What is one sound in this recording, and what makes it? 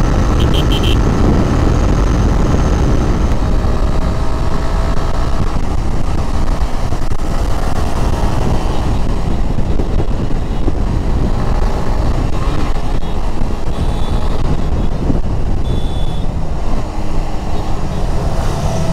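Wind roars loudly past the microphone.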